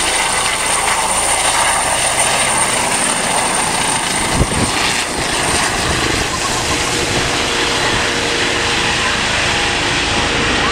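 Strong wind from the rotor buffets loudly.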